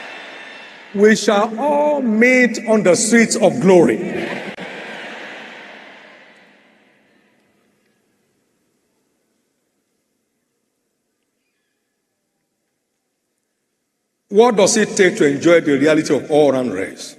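A man preaches with animation through a microphone, echoing in a large hall.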